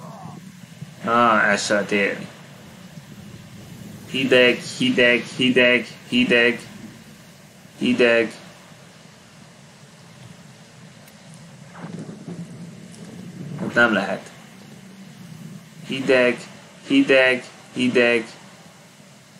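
A young man talks in short, lively bursts close by.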